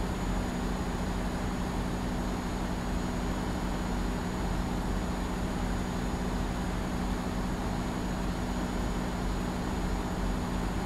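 A diesel semi-truck engine drones while cruising.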